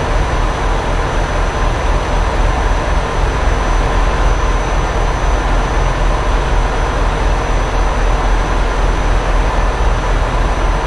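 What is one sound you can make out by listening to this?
A truck engine hums steadily while driving at speed.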